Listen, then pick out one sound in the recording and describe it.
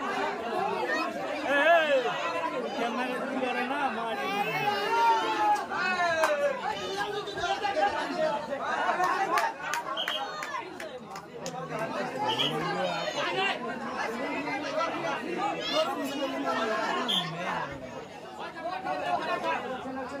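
A crowd of men shouts and cheers loudly outdoors.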